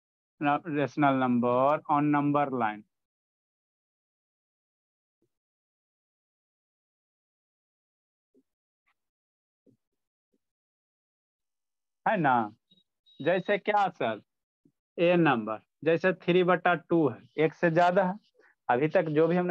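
A young man speaks calmly into a close microphone, pausing often.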